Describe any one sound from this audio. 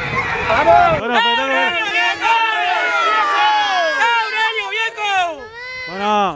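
A crowd cheers and shouts with excitement.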